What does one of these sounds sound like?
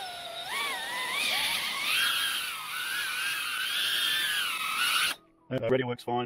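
A small drone's propellers whine, rising and falling in pitch.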